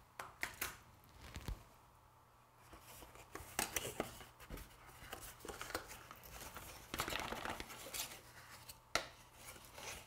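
Gloved hands handle a cardboard box, with soft rustles and scrapes.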